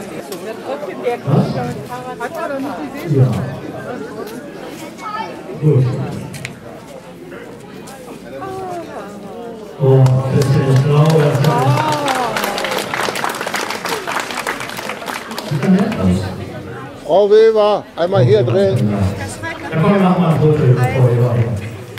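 A man speaks with animation through a microphone and loudspeaker outdoors.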